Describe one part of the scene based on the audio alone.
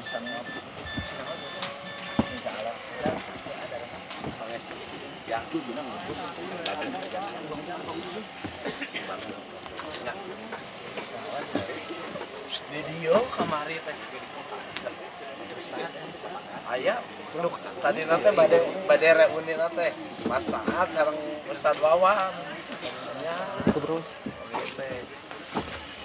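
Men and women talk quietly nearby outdoors.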